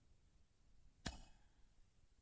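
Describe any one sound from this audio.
A sharp click sounds as a menu advances.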